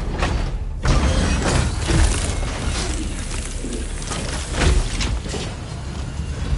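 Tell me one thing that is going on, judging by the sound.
Steam hisses loudly as a pod door opens.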